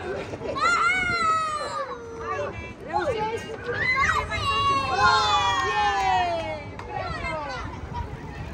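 Young children squeal and shriek excitedly close by.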